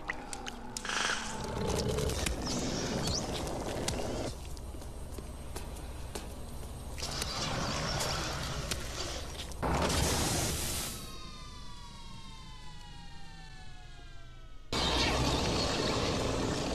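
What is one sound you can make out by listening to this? A large creature growls loudly.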